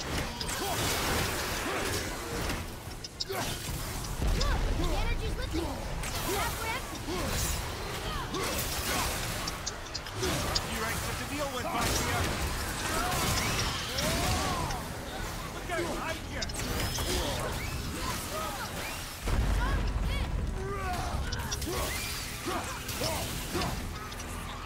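Magical blasts burst and crackle.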